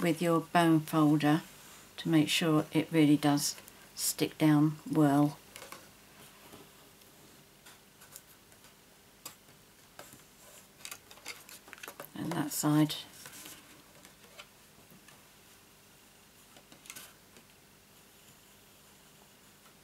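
Hands fold stiff cardstock and press its creases.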